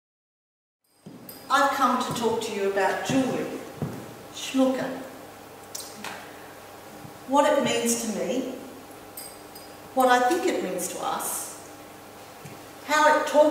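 A middle-aged woman speaks expressively in a room with a slight echo.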